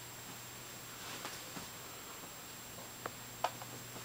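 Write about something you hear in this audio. A small dog scrambles and rustles on a fabric bed.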